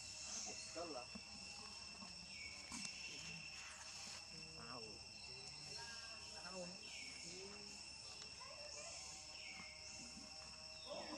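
A baby monkey squeaks and chirps in short high calls.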